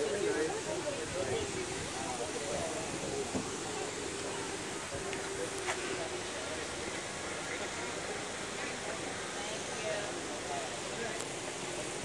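Adults and children chatter in a small crowd outdoors.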